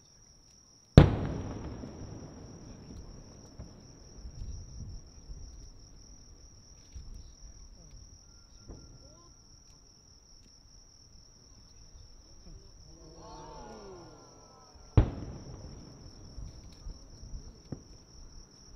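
Fireworks crackle and fizzle after a burst.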